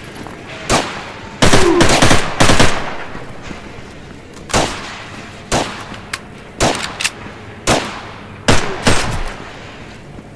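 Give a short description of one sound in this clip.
Rifle shots ring out, echoing sharply.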